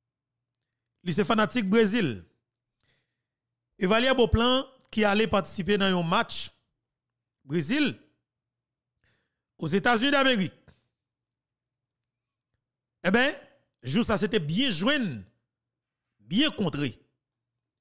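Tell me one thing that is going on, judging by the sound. A man talks with animation into a close microphone, in short bursts with pauses.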